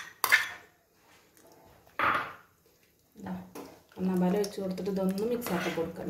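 A spoon mashes and stirs soft food in a metal pot.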